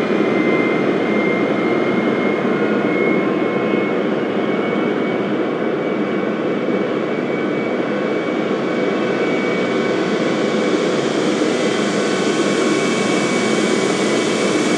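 Jet engines roar steadily as an airliner cruises.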